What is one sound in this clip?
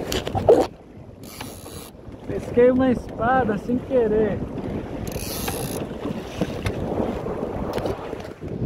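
Waves splash against the hull of a small boat.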